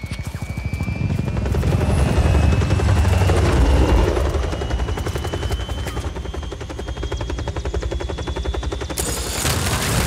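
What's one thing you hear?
A helicopter's rotor thuds steadily and loudly.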